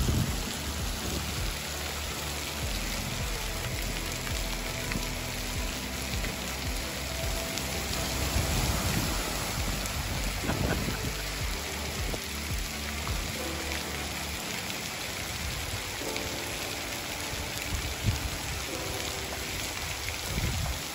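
Water jets spray and splash steadily onto wet ground outdoors.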